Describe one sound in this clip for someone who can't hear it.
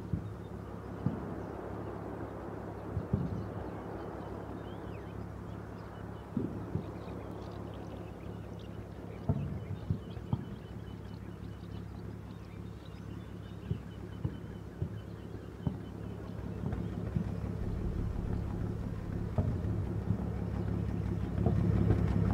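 Gunshots crack and thump now and then in the distance.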